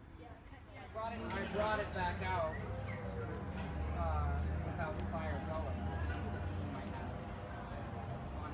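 Men and women chatter nearby in a crowd.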